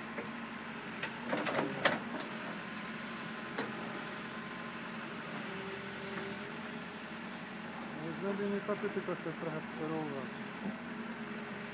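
A digger bucket scrapes and scoops dirt.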